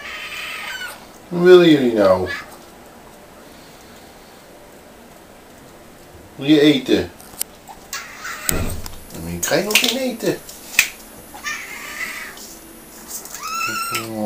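Kittens meow loudly and repeatedly, close by.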